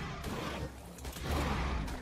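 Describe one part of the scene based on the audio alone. Creatures growl and thud as they fight.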